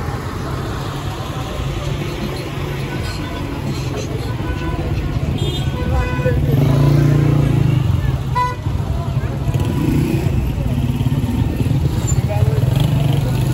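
A crowd of men and women talks and murmurs outdoors.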